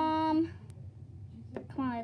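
A plastic container is lifted off a table with a light knock.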